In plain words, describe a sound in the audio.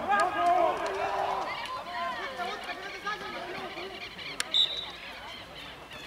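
Young men shout across an open field.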